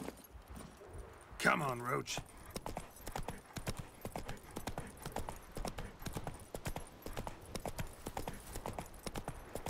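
A horse's hooves clop rhythmically on a dirt path.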